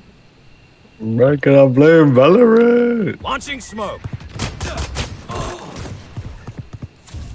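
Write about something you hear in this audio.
A young man talks loudly and with animation, close to a microphone.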